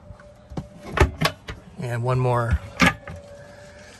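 A cabinet door knocks shut.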